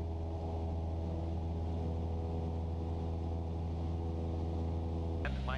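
A small plane's propeller engine drones loudly and steadily from close by.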